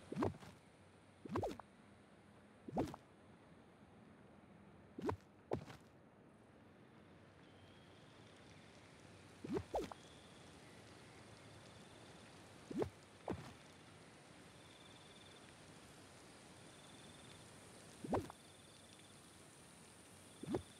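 Short soft pops sound now and then as items are picked and placed.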